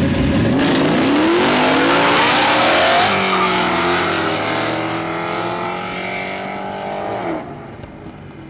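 A V8 muscle car accelerates hard away outdoors, its engine roaring through the gears and fading into the distance.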